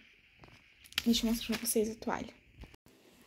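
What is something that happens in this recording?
Plastic wrapping crinkles under a hand.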